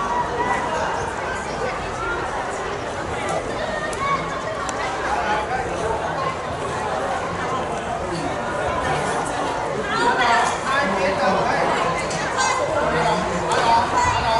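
A crowd of children chatters outdoors.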